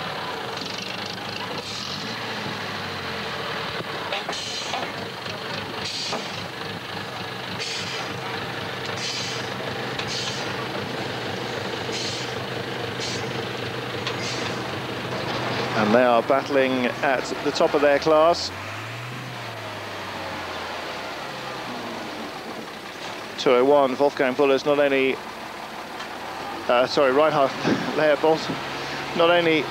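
A truck engine roars and labours as the truck climbs a rough slope.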